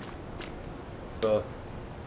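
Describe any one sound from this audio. Water splashes as a man wades through a pool.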